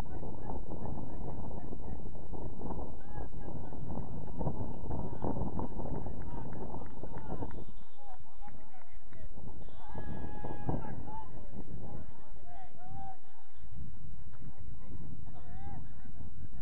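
Men on a playing field shout and call out to each other in the distance.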